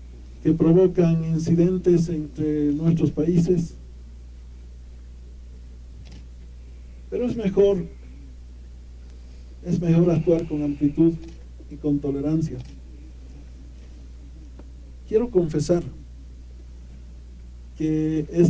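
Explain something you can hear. A middle-aged man speaks into a microphone outdoors in short, deliberate phrases with pauses.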